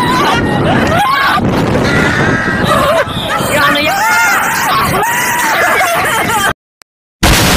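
A young man laughs and shouts with excitement.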